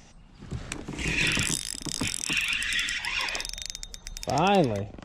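A fishing reel whirs as line is reeled in.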